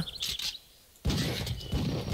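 A shotgun fires a single sharp blast.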